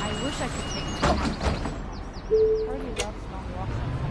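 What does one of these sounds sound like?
A bus door thuds and hisses as it opens and closes.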